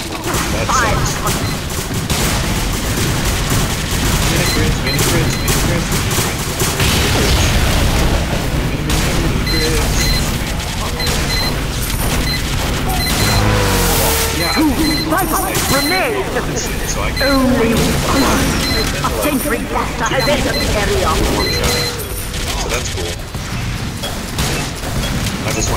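Rapid gunshots crackle and rattle nonstop.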